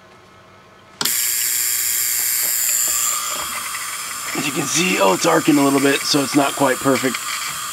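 An electric discharge hisses and buzzes inside a glass jar.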